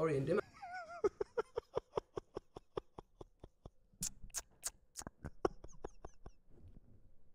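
A man laughs hard in rapid bursts.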